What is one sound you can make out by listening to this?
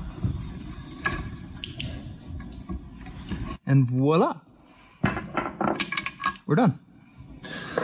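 A wrench clicks and clinks against metal.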